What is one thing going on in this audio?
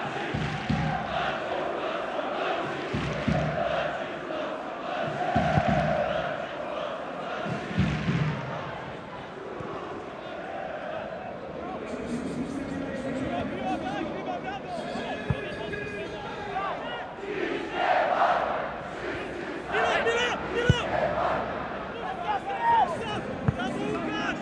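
A large stadium crowd chants and cheers loudly.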